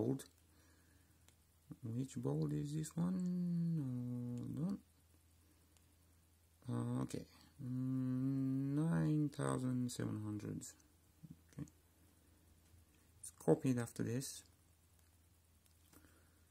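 Phone keys click softly under thumbs.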